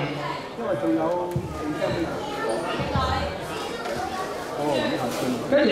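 A crowd of young people chatters and talks nearby in a large echoing hall.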